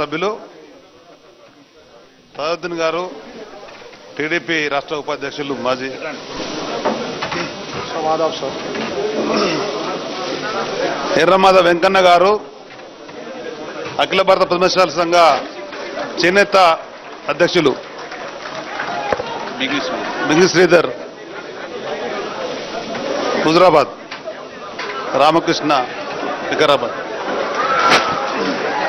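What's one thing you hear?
A crowd of men chatters and calls out nearby.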